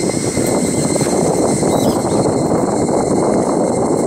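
A cable car rattles and clatters as it rolls over a pylon's wheels.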